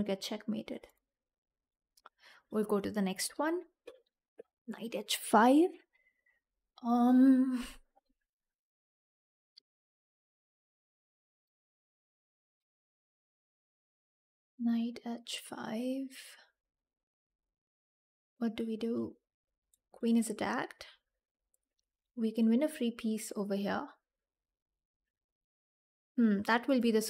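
A young woman talks animatedly into a close microphone, in short bursts with pauses.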